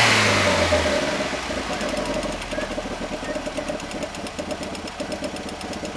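A car engine idles with a steady, rapid throb.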